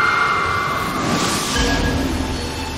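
A bright magical blast whooshes and shimmers.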